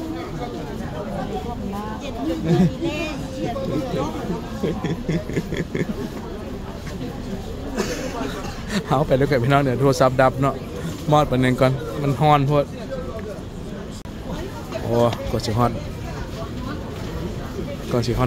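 A crowd of people chatters nearby, outdoors.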